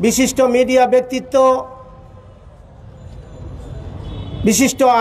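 A man speaks loudly into a microphone, in short bursts with a pause between.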